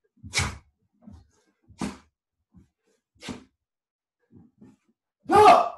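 Bare feet thump softly on a wooden floor.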